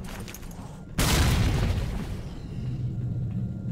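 A fire roars and hisses nearby.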